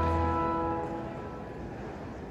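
A woman's voice ends a held note through a microphone in an echoing hall.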